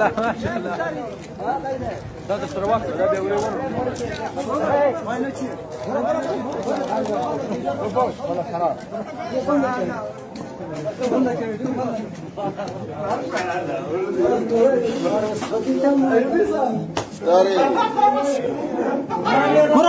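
Several women talk and shout over one another nearby, agitated.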